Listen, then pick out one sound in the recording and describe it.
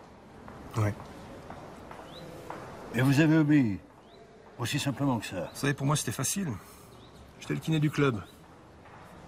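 A middle-aged man speaks quietly, close by.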